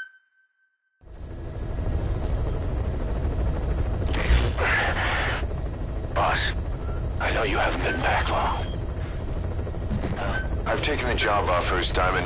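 A helicopter engine rumbles steadily from inside the cabin.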